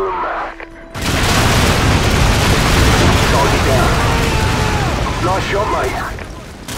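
An explosion booms nearby and rumbles.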